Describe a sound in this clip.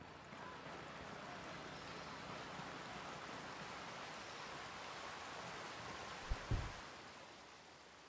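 Footsteps tread along a forest path.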